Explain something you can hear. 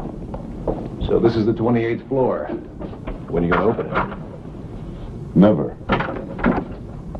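An older man talks with surprise nearby.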